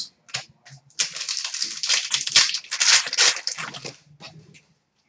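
Trading cards rustle and slide as they are handled.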